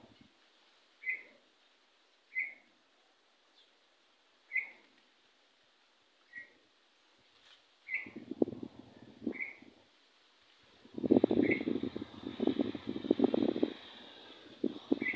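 A small bird chirps in short, repeated calls.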